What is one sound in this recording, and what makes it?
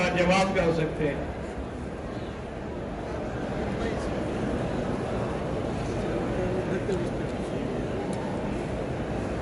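An elderly man speaks steadily into a microphone in a large echoing hall.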